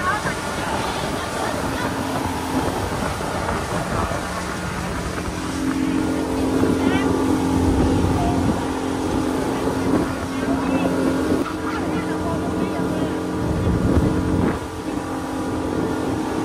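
Water rushes and churns behind a speeding boat.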